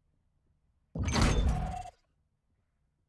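A whooshing electronic swell sounds as a game menu opens.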